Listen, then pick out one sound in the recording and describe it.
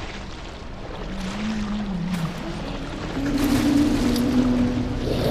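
A large creature growls low and drawn out.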